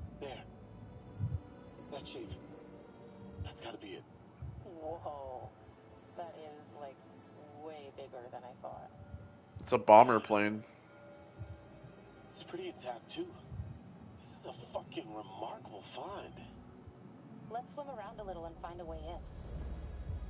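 A young woman talks calmly over a diving radio.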